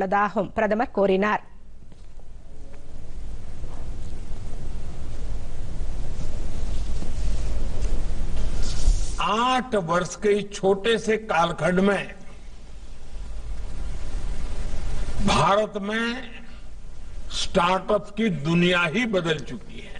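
An elderly man speaks firmly into a microphone, with pauses between phrases.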